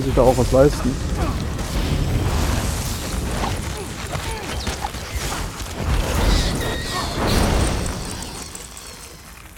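Magic blasts crackle and roar during a fight.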